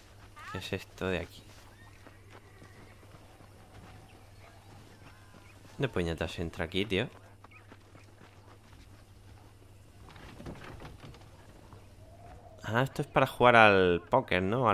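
Footsteps run over dirt and wooden boards.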